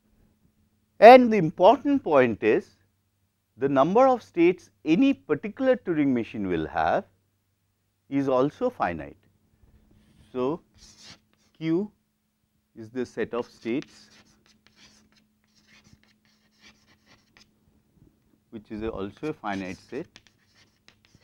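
A man lectures calmly through a clip-on microphone.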